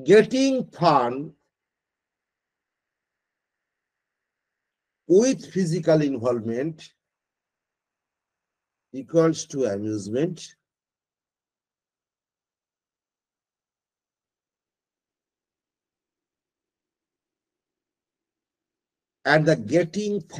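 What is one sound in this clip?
An elderly man speaks calmly through an online call, in short phrases with long pauses.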